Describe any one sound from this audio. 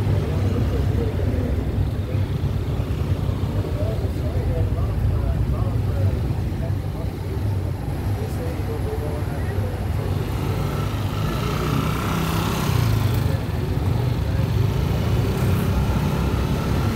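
Car engines idle and pass along the street.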